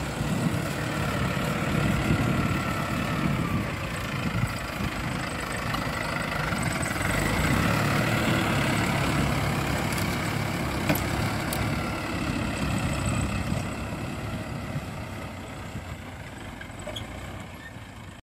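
Soil and clods crunch under a plough.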